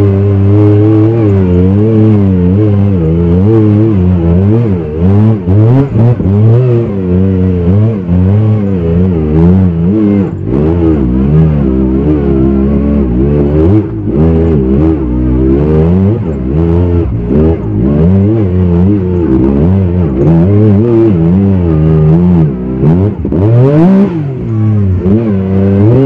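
An engine drones and revs up and down steadily as an off-road vehicle drives along a bumpy track.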